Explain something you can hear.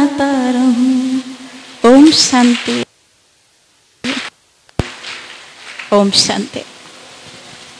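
A man speaks slowly through a microphone over loudspeakers, in a large echoing hall.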